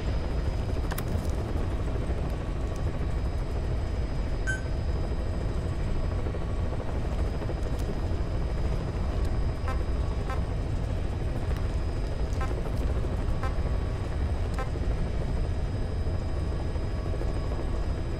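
A helicopter engine drones steadily from inside the cabin.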